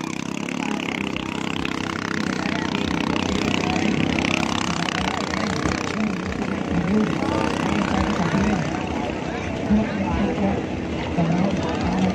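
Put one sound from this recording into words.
A motorboat engine drones nearby.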